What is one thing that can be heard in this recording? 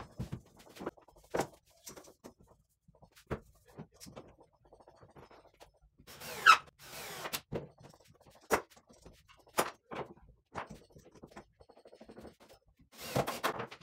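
A power drill whirs briefly.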